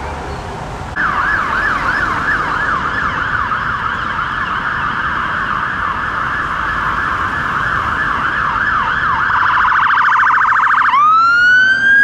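A fire engine siren yelps rapidly.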